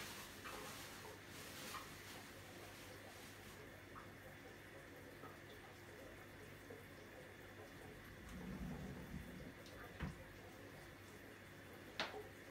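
An aquarium filter hums steadily.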